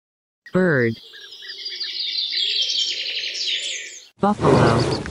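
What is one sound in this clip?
A bird sings with quick chirps.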